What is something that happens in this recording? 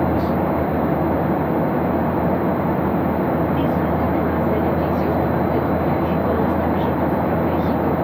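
An airliner's engines roar steadily, heard from inside the cabin.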